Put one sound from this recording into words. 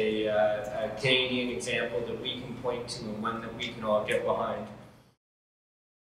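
A man speaks calmly into a microphone, heard through loudspeakers in a large echoing hall.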